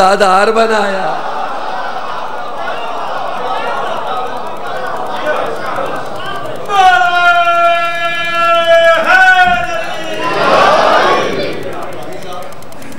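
A crowd of men chants and calls out together.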